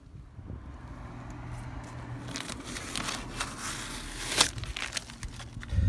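Masking tape tears and peels away from a surface.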